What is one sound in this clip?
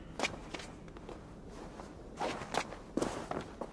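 Hands and boots scrape and thud against stone while climbing.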